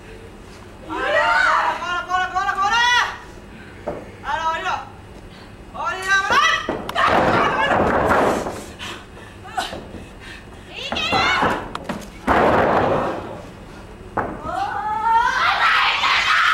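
A young woman cries out in effort and pain.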